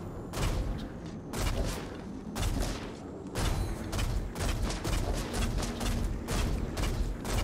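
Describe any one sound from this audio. Arrows thud into a body with heavy impacts.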